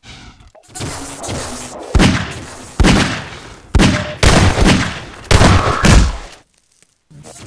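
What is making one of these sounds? Pistol shots ring out several times.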